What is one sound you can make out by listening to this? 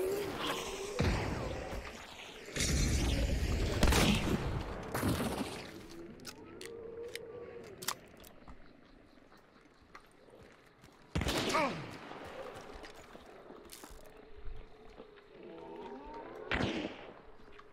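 Gunshots crack loudly, several times.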